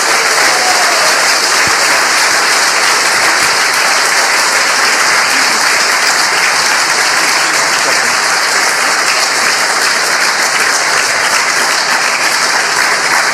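A large audience applauds loudly and steadily in a hall.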